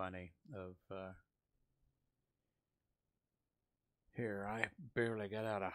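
An older man talks calmly into a close microphone, with pauses.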